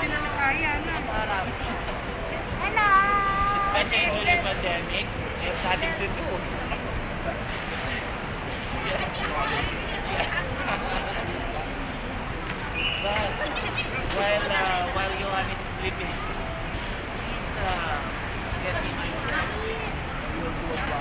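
Several women and children talk and chatter excitedly nearby.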